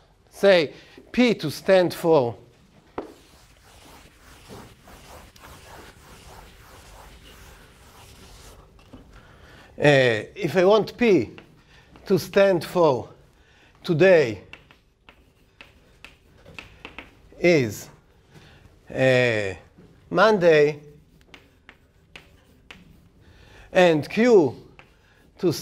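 An older man speaks calmly in bursts, heard up close in a room with a slight echo.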